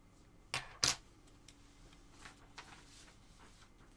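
A punch needle tool taps and knocks against fabric stretched in a hoop.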